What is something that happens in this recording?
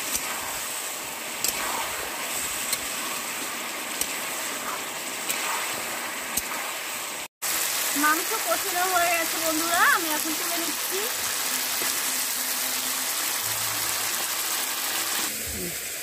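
Meat sizzles in a hot pan.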